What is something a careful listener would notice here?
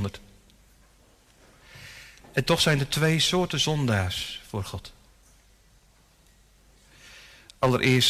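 A man speaks calmly and earnestly into a microphone, with pauses, in a room with some echo.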